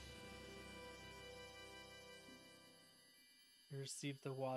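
A short game jingle of bright tones plays and fades.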